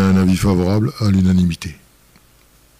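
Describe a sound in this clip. An older man speaks into a microphone.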